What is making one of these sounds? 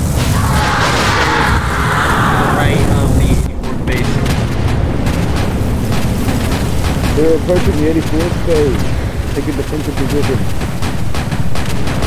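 Heat ray beams hum and crackle.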